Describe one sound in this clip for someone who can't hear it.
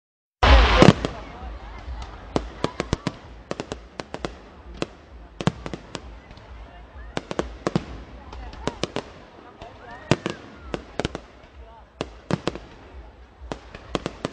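Firework rockets whistle as they rise.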